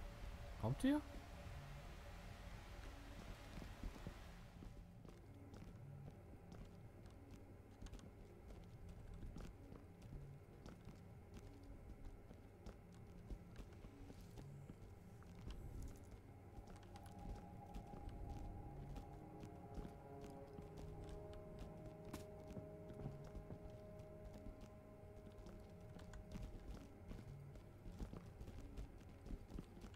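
Footsteps thud softly on a hard floor and stairs.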